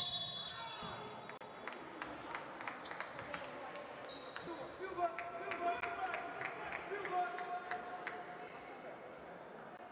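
A basketball bounces on the floor in a steady dribble.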